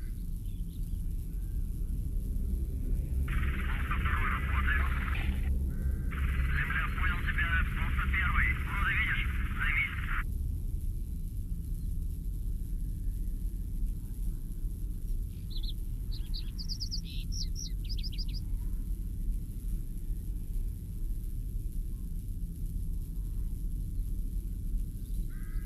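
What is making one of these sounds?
Wind blows steadily outdoors, rustling through grass and trees.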